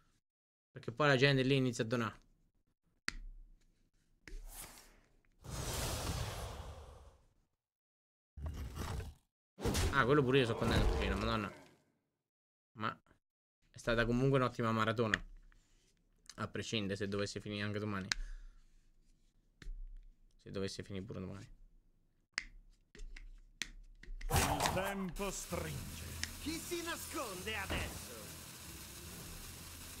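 A man talks into a close microphone in short, animated bursts with pauses.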